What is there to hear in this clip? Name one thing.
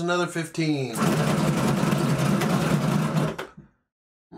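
Dice tumble and rattle across a table.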